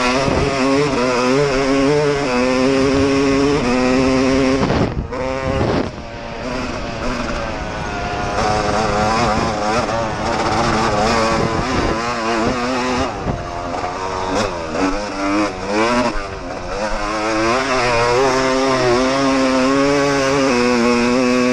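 A dirt bike engine revs loudly up close, rising and falling as the rider shifts.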